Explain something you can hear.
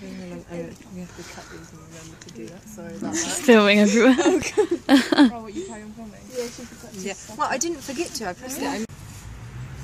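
Young women talk and laugh excitedly close by.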